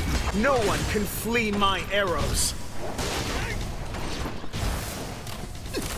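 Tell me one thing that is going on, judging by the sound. Magic blasts burst with loud whooshes.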